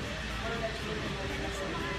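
A young woman laughs and talks close by.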